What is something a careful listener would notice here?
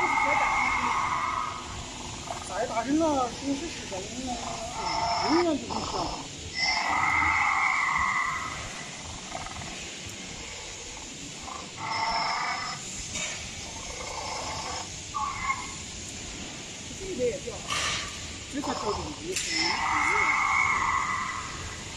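An animatronic dinosaur lets out loud, growling roars again and again.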